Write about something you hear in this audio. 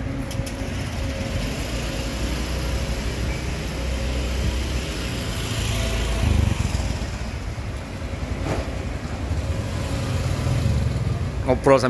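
Motorbikes pass by on a street.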